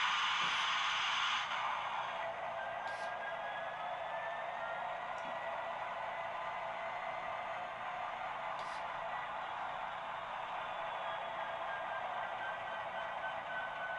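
A model diesel locomotive idles with a steady electric hum.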